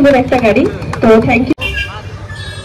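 A woman speaks with animation into a microphone, heard over a loudspeaker.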